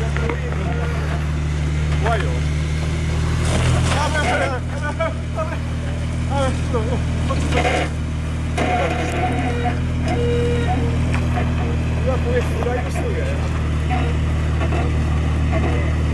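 Tyres grind and scrape over rock.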